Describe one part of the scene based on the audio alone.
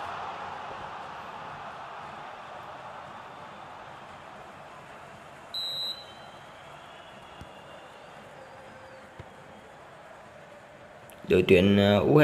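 A stadium crowd roars and slowly fades.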